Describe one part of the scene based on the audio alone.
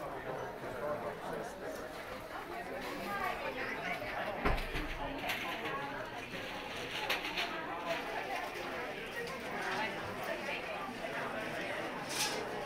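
A crowd of people chatter in the background indoors.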